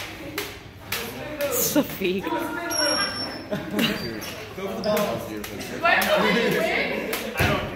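A young woman shouts and laughs excitedly nearby.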